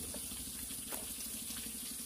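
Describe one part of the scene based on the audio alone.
Bamboo shoots rustle and crinkle as a hand handles them.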